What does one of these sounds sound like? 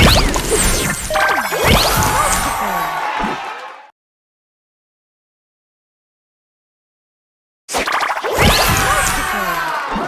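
Bright electronic chimes and whooshing effects ring out in quick bursts.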